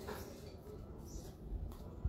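Bare feet pad across a tiled floor.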